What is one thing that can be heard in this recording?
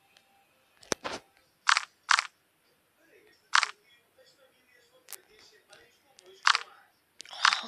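Short game menu clicks sound as pages are turned.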